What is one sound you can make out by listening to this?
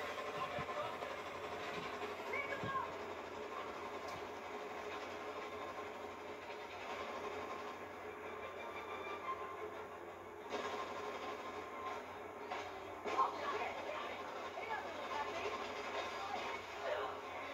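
Gunfire rattles from a television speaker.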